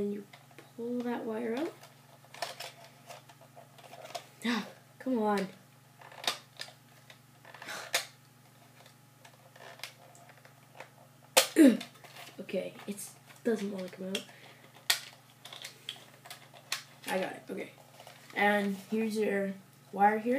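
A plastic toy clicks and rattles in hands.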